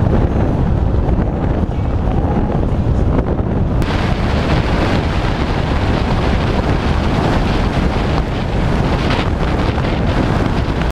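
Wind rushes loudly past a moving vehicle.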